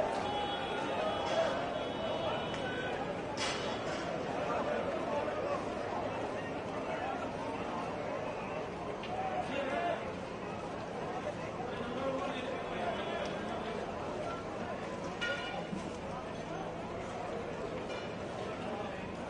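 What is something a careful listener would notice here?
A large crowd of men shouts and clamours outdoors.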